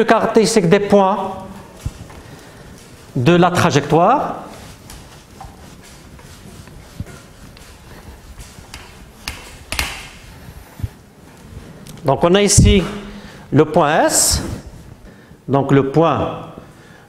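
A middle-aged man speaks calmly in short bursts, nearby.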